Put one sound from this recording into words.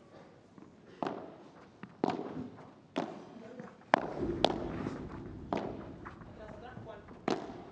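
Rackets strike a ball in a quick rally, each hit a sharp pop.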